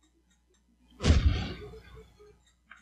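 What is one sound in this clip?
A video game bomb explodes with a deep boom.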